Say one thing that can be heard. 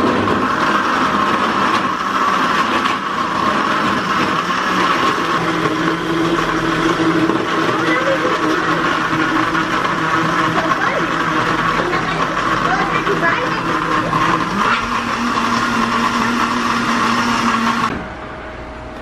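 A blender motor whirs loudly and steadily.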